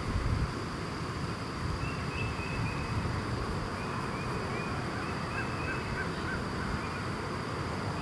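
A dog runs across grass.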